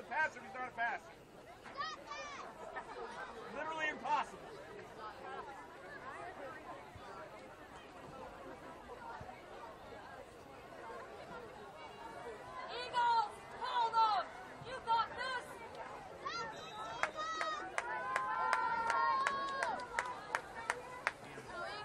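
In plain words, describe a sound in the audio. Men and boys on the sideline shout and cheer outdoors.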